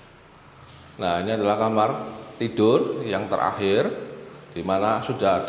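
A middle-aged man speaks with animation close by, in a bare room with a slight echo.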